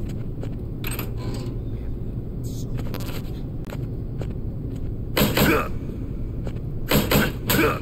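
A metal locker door swings open with a clang.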